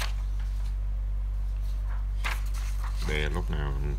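A sheet of paper is flipped over with a soft swish.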